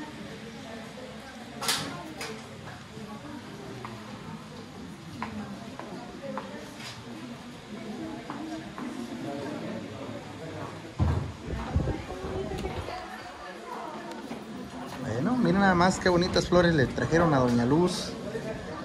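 A crowd of men and women chat and murmur indoors.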